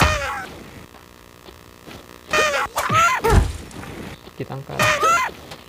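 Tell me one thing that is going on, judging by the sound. Cartoonish sound effects chirp and warble in quick bursts.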